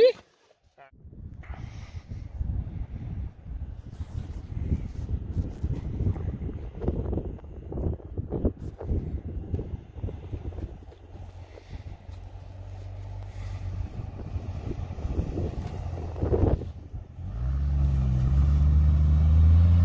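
An engine rumbles as a car drives through snow.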